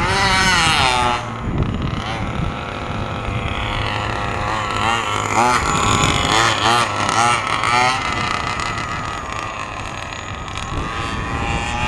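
A 1/5-scale two-stroke petrol RC buggy revs up and down.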